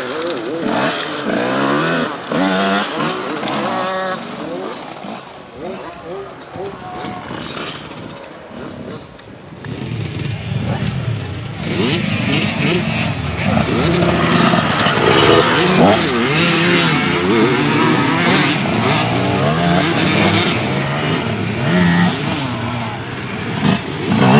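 A dirt bike engine revs hard outdoors, its pitch rising and falling.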